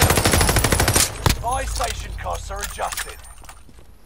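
A rifle's magazine clicks as it is reloaded.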